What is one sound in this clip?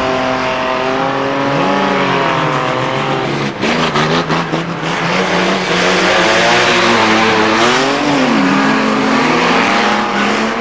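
Car engines roar and rev loudly.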